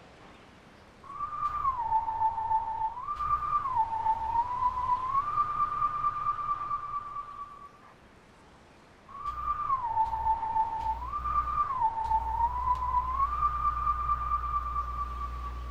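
A wolf howls a slow tune that rises and falls in pitch.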